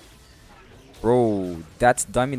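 A magic spell bursts with a loud, falling, swooping tone.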